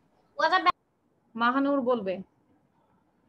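A young child speaks loudly through an online call.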